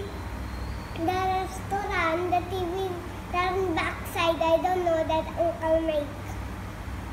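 A young boy talks cheerfully close by.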